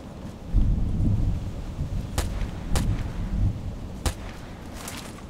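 Footsteps tread through grass and brush.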